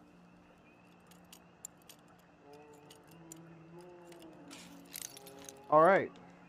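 A padlock clicks and rattles as a lock is picked.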